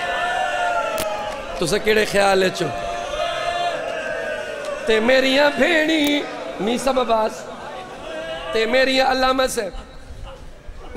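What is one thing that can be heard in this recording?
A man chants a mournful lament loudly through a microphone.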